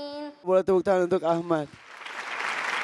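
A young boy speaks loudly into a microphone.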